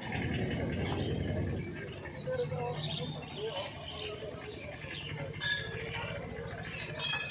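Men and women talk and murmur in a crowd outdoors.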